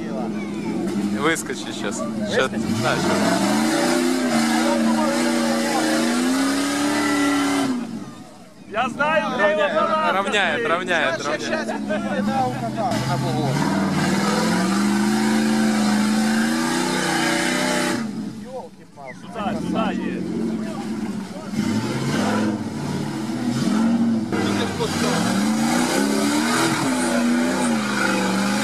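A car engine revs hard and strains, rising and falling.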